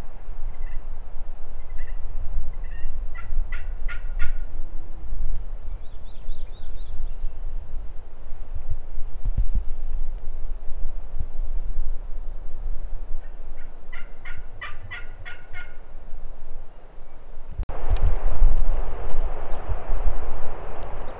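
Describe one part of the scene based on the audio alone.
Wind rumbles and gusts outdoors.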